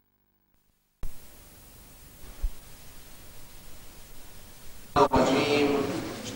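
Tape hiss and static crackle.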